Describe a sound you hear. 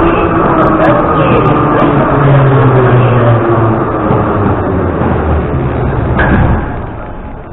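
A subway train rumbles and whines as it slows to a stop.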